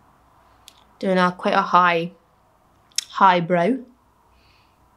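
A young woman speaks close to a microphone in short, lively bursts.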